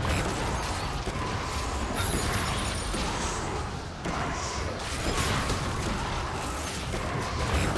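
Game spells burst and blows land in a video game fight.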